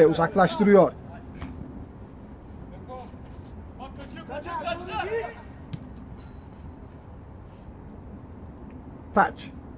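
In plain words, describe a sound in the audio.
Men shout to each other across an outdoor football pitch.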